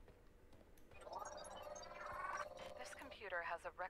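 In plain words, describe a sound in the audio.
An electronic device warbles and beeps.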